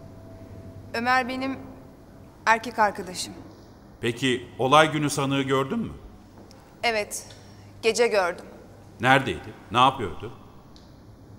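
An older man speaks firmly and formally.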